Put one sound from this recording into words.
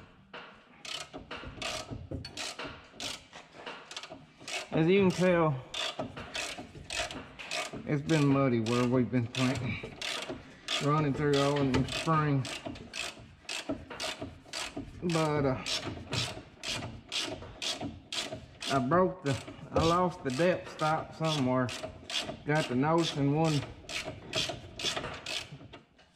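A ratchet wrench clicks steadily, close by.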